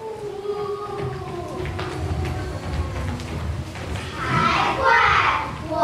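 Children's feet patter as they run across a stage.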